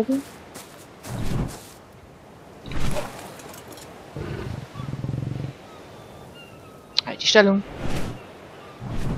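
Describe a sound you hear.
Large wings flap with deep whooshing beats.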